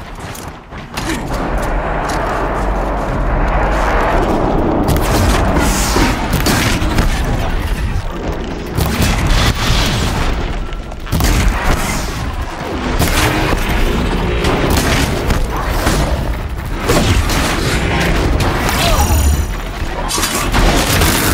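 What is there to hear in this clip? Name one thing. A large machine creature roars and clanks.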